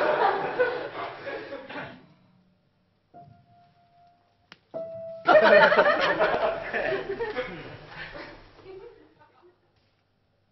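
A piano plays chords close by, ringing out between phrases.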